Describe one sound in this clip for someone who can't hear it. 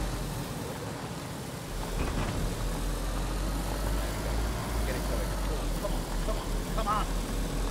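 Tyres rumble over rough grass.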